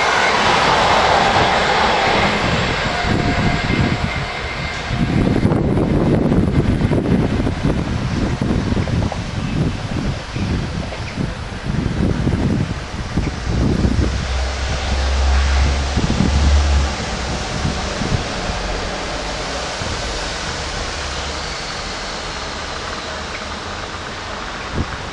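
A train rumbles along the tracks, moving away and slowly fading into the distance.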